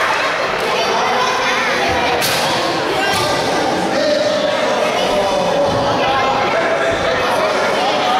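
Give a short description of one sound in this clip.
A metal chair clatters against the ring.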